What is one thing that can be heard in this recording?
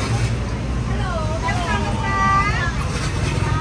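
Women chat nearby on the street.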